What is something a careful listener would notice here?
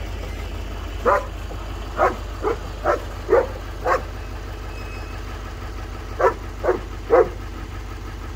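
A dog barks sharply several times nearby.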